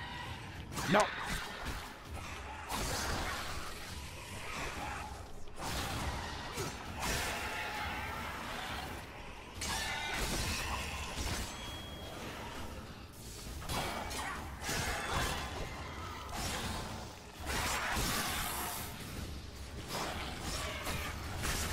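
A sword slashes through flesh with wet, squelching hits.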